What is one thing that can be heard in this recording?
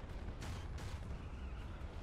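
A tank cannon fires with sharp bangs.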